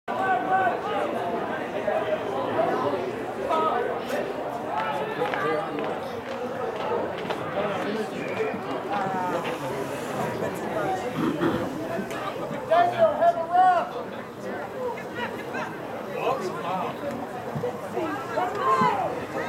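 Young men on a sports field shout and call out to each other outdoors.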